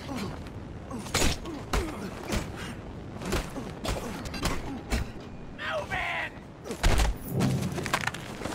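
Punches land with heavy thuds during a brawl.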